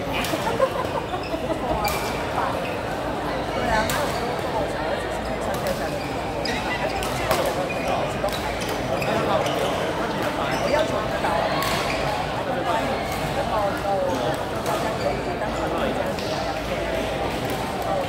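Shoes squeak on a hall floor.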